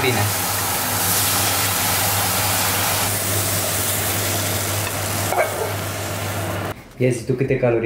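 Food sizzles loudly in a frying pan.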